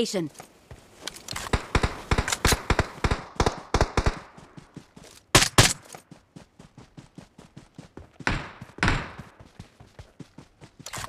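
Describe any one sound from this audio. Footsteps run quickly over ground.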